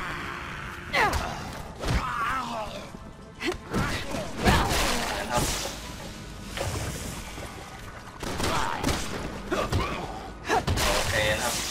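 Heavy blows thud during a fight.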